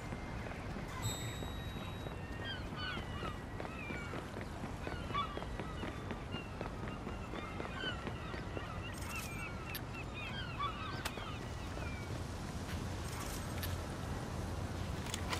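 Footsteps run quickly on concrete.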